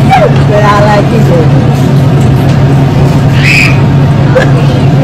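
A crowd of young men and women chatter and exclaim nearby outdoors.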